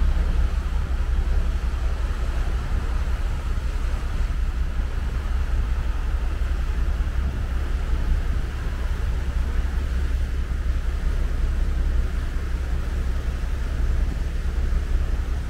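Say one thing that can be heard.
A ship's engine rumbles low and steady.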